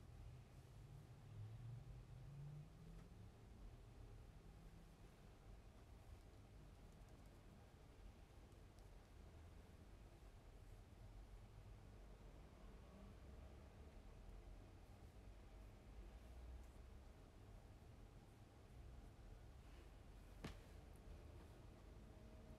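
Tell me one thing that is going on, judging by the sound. Fingertips softly pat and rub skin.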